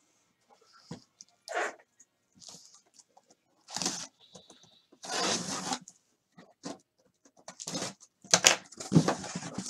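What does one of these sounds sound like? Cardboard rustles and scrapes as a box is handled and opened.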